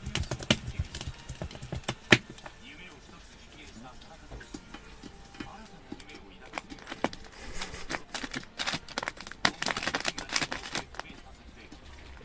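A dog's claws scratch and tap against a plastic box.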